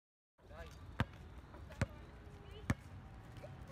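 A basketball bounces on pavement outdoors.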